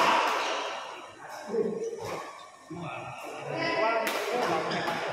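People murmur and chatter nearby in an echoing hall.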